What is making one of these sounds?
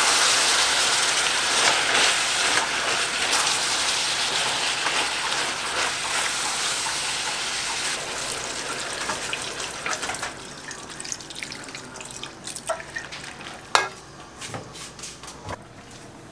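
A spatula scrapes and clanks against a metal pan.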